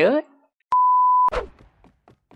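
A steady high test tone sounds briefly.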